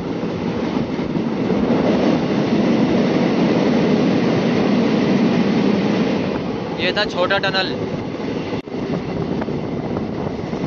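A train rumbles steadily along the track, heard from close by.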